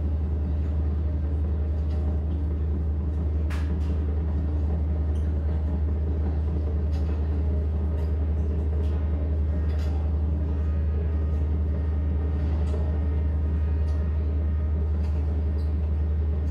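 A keyboard plays a deep, droning electronic sound.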